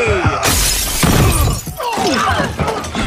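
Glass shatters and debris crashes loudly.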